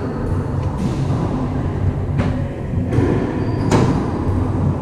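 A racquetball smacks off the walls of a large echoing court.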